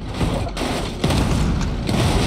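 A car slams hard into a metal structure.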